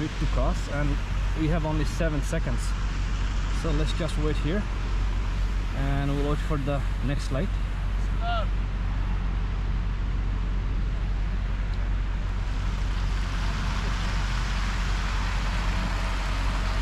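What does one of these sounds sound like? Car engines hum as vehicles drive slowly past.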